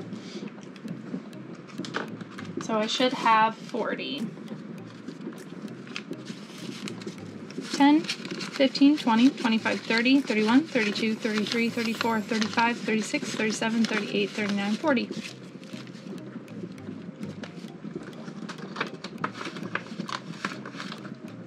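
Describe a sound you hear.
Paper bills rustle and crinkle as they are counted by hand.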